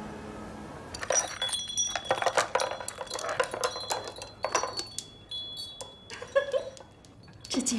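Small glass bottles on a hanging mobile tinkle and clink.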